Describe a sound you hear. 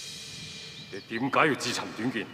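A middle-aged man speaks tensely.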